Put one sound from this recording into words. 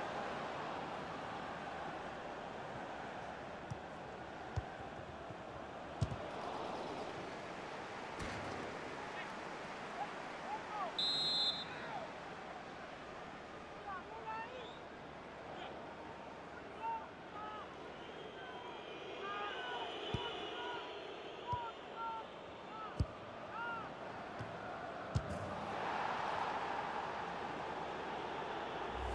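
A stadium crowd murmurs and chants steadily.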